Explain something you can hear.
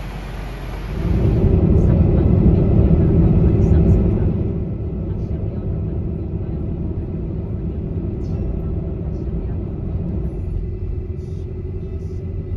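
Car tyres rumble steadily on a highway.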